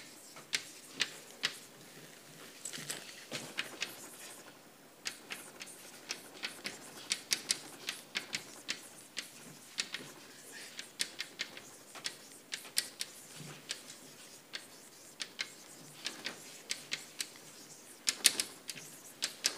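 Chalk taps and scrapes on a blackboard in quick, uneven strokes.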